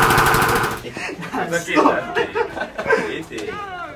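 Young men talk and laugh together, close by.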